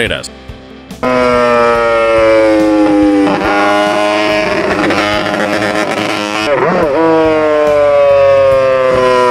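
A racing motorcycle engine screams at high revs, shifting gears and dropping in pitch between shifts.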